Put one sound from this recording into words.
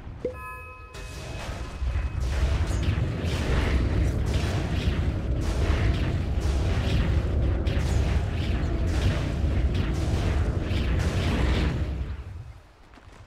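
Game spell blasts and weapon hits clash loudly in a fight.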